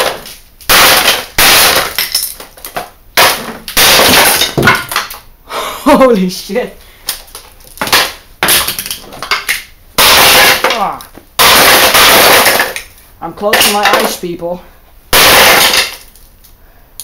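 Glass cracks and shatters loudly under repeated blows.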